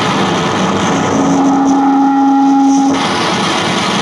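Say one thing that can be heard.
A tuba holds a long low note.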